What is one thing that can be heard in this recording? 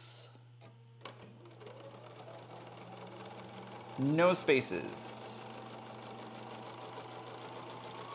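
A sewing machine whirs steadily.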